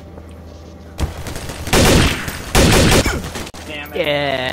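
A rifle fires loud, rapid bursts of shots.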